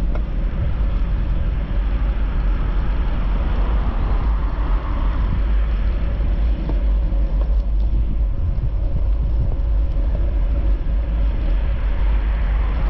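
Wind rumbles steadily across the microphone outdoors.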